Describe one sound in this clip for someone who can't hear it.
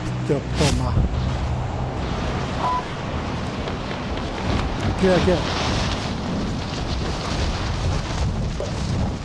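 Wind rushes loudly past during a fall.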